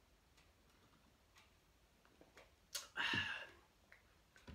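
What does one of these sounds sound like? A young man gulps a drink from a can.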